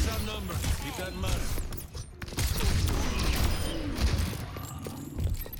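Gunshots fire in rapid bursts with loud impacts and explosions.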